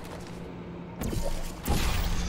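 A portal gun fires with a sharp zap.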